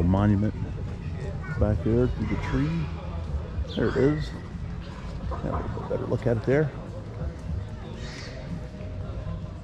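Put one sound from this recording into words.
Wind rustles through tree leaves outdoors.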